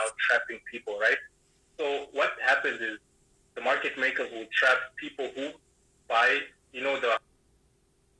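A young woman speaks with animation over a phone's live stream.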